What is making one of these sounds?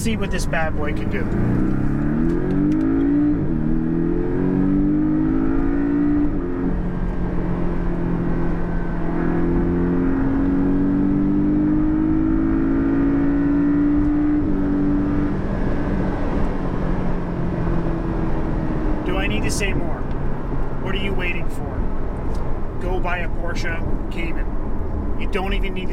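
A car engine revs up and roars steadily from inside the car.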